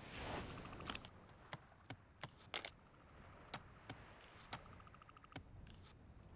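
Menu clicks tick sharply in quick succession.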